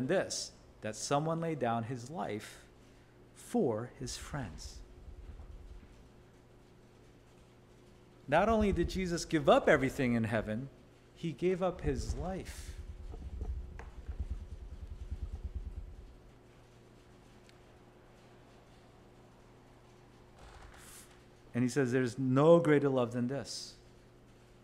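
A man speaks calmly into a microphone in an echoing room, pausing between phrases.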